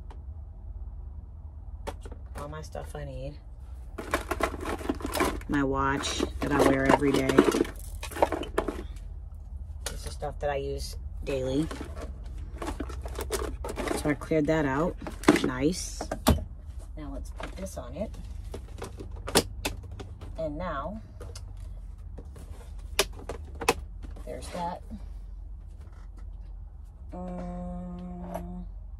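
Small objects clatter and knock as a woman rummages through them.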